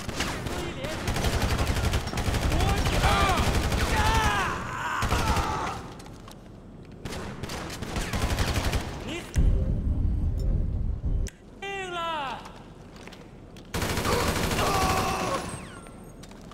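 A rifle fires rapid bursts of gunshots that echo in a large hall.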